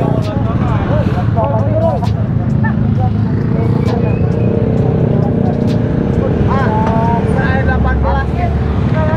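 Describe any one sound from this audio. Young men talk and shout over one another outdoors.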